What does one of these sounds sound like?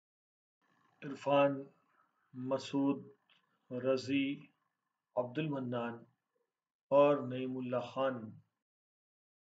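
An older man speaks calmly and up close.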